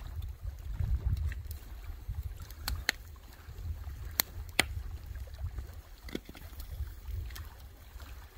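Wind rumbles outdoors.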